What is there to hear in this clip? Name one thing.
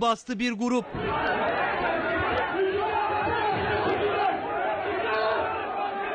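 A crowd of men shout and argue in a tense scuffle.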